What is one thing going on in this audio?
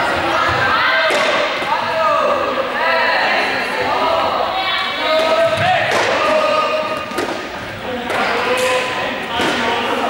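Many young people shout and call out to each other in a large echoing sports hall.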